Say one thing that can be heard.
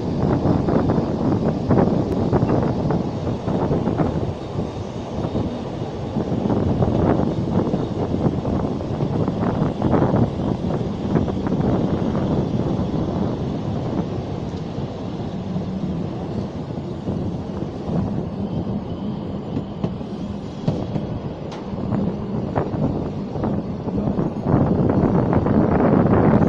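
Train carriages rumble and clatter steadily along the rails.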